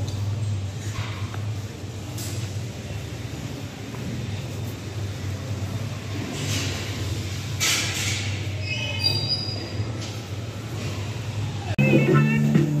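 Small electric go-karts hum along a track nearby.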